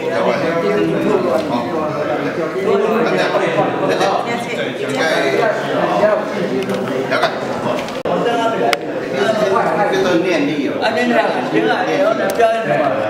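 Several men and women talk at once nearby in steady chatter.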